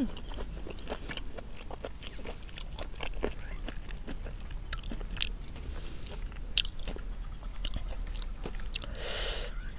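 Crisp vegetables snap and crunch between fingers.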